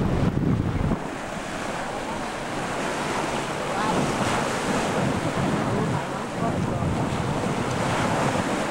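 Sea water laps and churns steadily.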